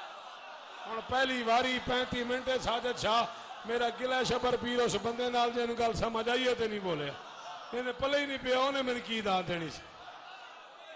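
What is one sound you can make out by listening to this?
A man chants loudly through a microphone in an echoing hall.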